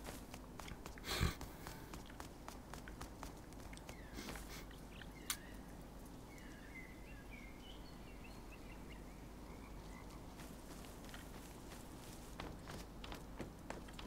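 Footsteps crunch over dirt and grass.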